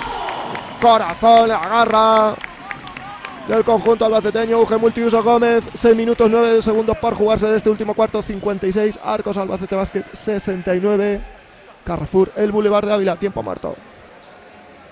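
A crowd chants loudly in an echoing hall.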